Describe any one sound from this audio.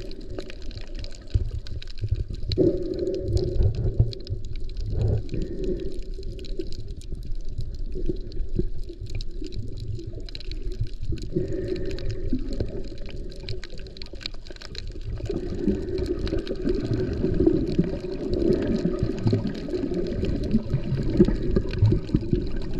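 Faint clicks and crackles pop underwater.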